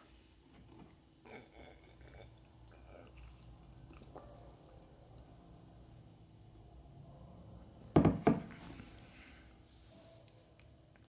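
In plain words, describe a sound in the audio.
Carbonated drink fizzes softly in a glass.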